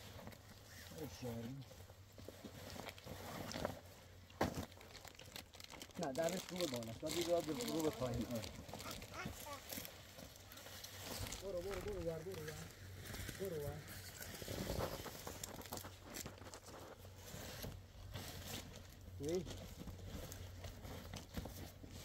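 Tent fabric rustles and flaps as a man handles it.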